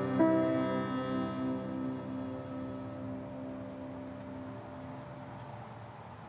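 A bowed string instrument plays a final chord that rings and slowly fades.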